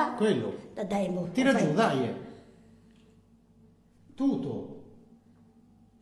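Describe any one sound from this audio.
An elderly woman speaks close to a microphone.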